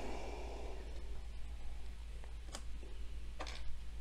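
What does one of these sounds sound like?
Plastic pieces click softly as a man handles them.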